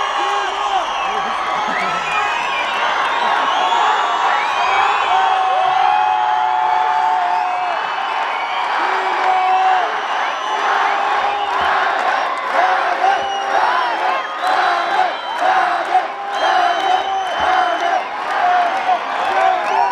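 A large crowd sings along and cheers loudly.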